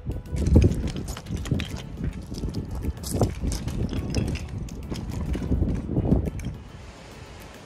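Boots crunch and scrape on loose rocks.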